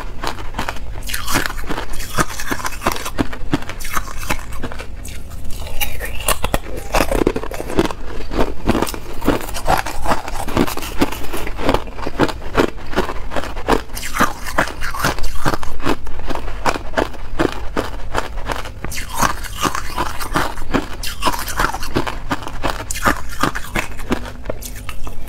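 A woman crunches ice loudly and closely while chewing.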